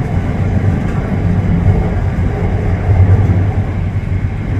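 Another train roars past on the next track.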